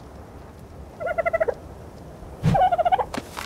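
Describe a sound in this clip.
A small bird-like creature squawks in short bursts.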